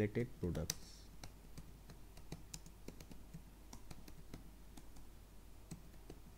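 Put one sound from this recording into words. Keys click quickly on a computer keyboard.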